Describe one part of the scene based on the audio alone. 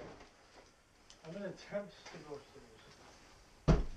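Fabric rustles as a man shakes out an old coat.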